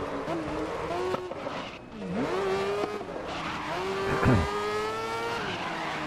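Tyres screech through a tight corner.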